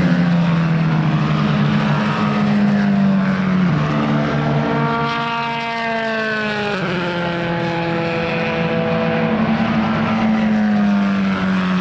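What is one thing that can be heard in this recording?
A single-seater race car engine screams past close by, its pitch dropping as it goes.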